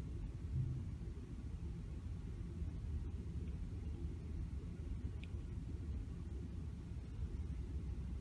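A hair dryer blows with a steady low whir.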